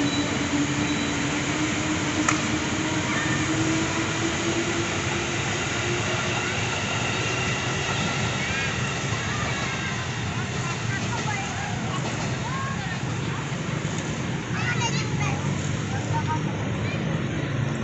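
An electric train rumbles and hums along the tracks nearby.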